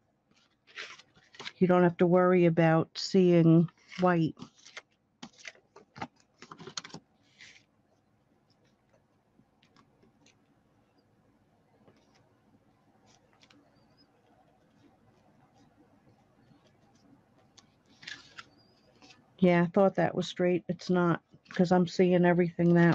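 Card stock rustles and taps softly as it is handled.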